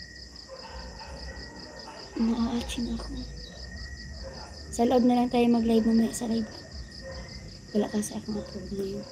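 A second young woman talks close by.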